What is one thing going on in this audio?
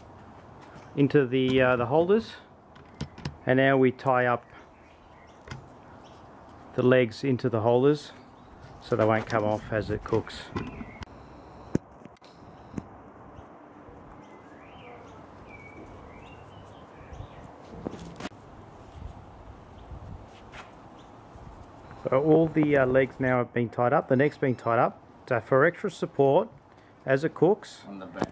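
A middle-aged man speaks calmly, explaining.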